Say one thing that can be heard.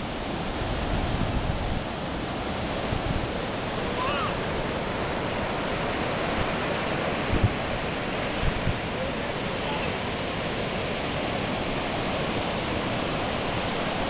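Waves wash steadily onto a beach, outdoors in wind.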